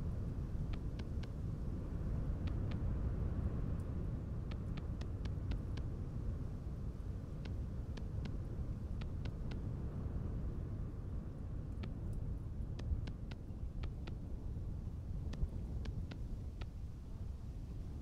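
Short soft clicks sound in quick bursts.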